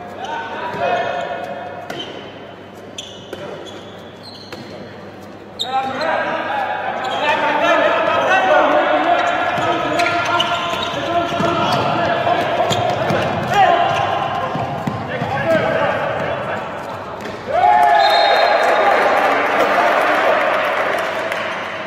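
A ball bounces on a hard indoor court.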